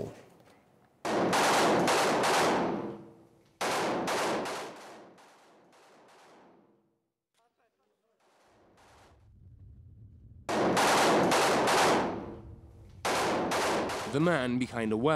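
A rifle fires in rapid bursts outdoors, echoing.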